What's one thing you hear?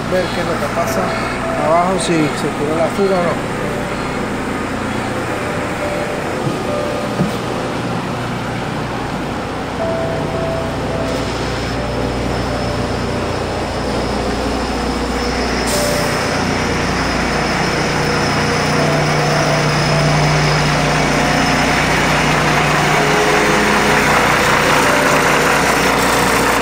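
A truck engine hums steadily.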